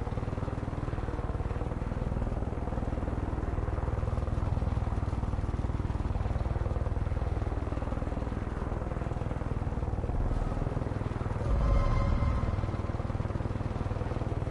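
A helicopter's engine and rotor drone steadily and loudly.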